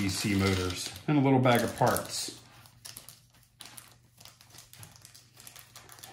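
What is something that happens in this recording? Small plastic parts click and rustle softly as they are handled.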